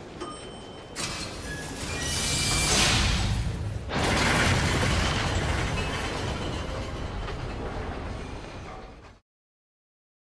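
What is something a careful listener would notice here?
A lift clatters and rumbles loudly as it drops.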